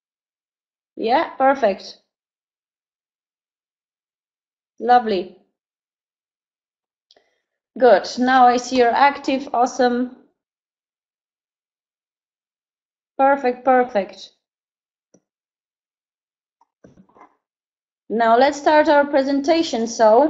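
A young woman speaks calmly through a microphone in an online call, in short phrases with pauses.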